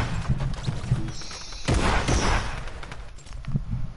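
A loud whoosh sounds as a figure is carried off in a beam of light.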